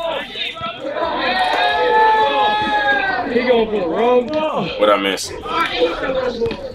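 A crowd of young men cheers and shouts outdoors.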